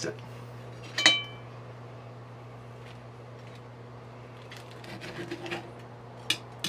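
A knife and fork clink and scrape against a plate.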